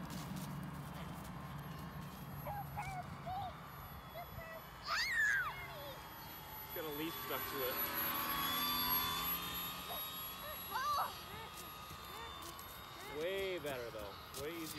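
A small model plane's motor buzzes overhead.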